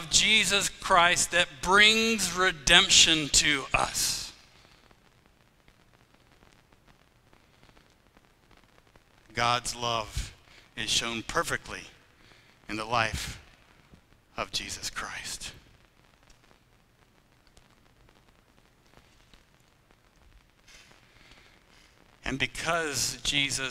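A man speaks with animation through a microphone in a large echoing room, pausing often.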